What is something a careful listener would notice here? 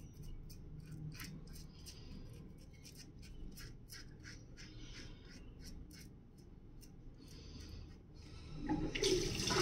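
A razor scrapes over stubble in short, crisp strokes, close up.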